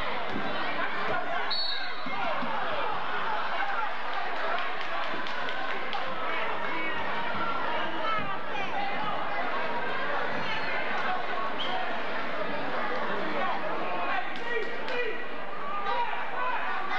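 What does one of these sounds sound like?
A large crowd chatters and calls out in an echoing gym.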